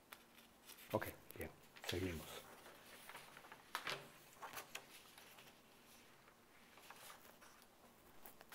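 A sheet of paper slides and rustles across a table.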